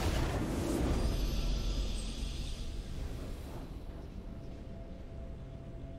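A short triumphant fanfare plays.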